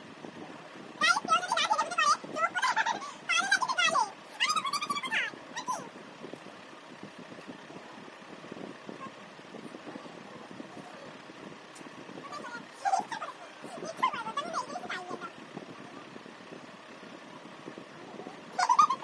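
A young woman talks and laughs close by with animation.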